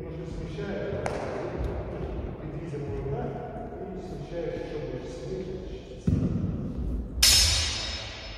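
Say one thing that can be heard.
Swords clash with a sharp, ringing clang.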